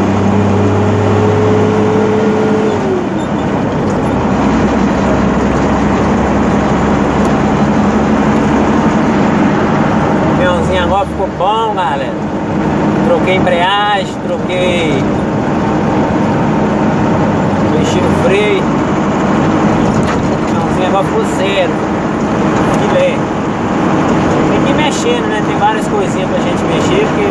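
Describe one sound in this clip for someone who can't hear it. Tyres rumble and hiss on the road.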